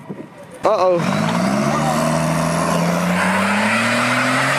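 A truck's diesel engine revs up and roars.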